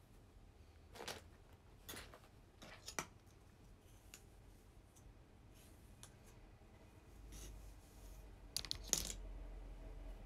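A comb brushes and rustles through hair.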